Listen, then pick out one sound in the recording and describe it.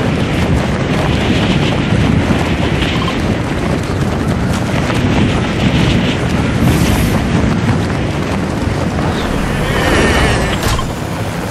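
Wind rushes loudly past a falling figure.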